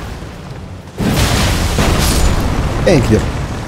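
A sword slashes with a whooshing burst.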